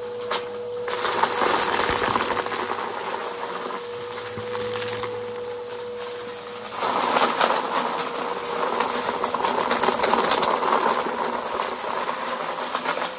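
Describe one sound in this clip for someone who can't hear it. A vacuum cleaner sucks up debris with a rattling rush.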